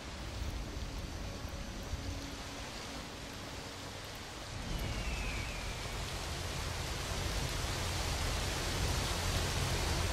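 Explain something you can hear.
Water rushes and roars loudly, growing louder partway through.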